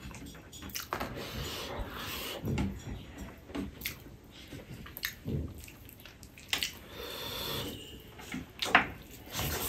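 Fingers squish and scrape through sticky rice close up.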